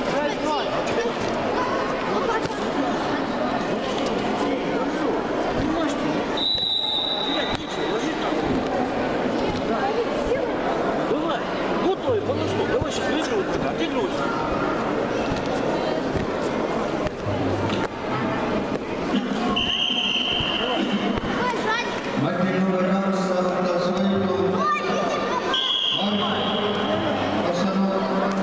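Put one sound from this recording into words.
Many children and adults chatter and call out in a large echoing hall.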